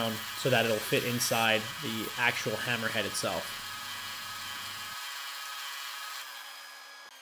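A belt sander whirs as wood is pressed against it.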